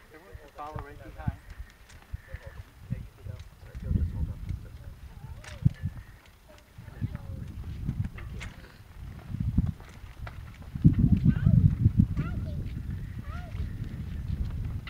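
Footsteps scuff on pavement as a group walks slowly.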